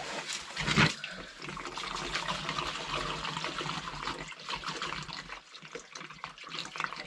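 Liquid gurgles as it pours from a can into a funnel.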